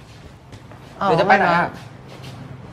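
A teenage boy speaks nearby, asking a question.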